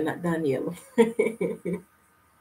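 A middle-aged woman laughs.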